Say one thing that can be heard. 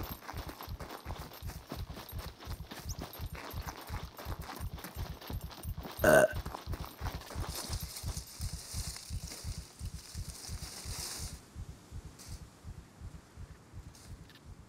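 Footsteps thud at a steady walking pace.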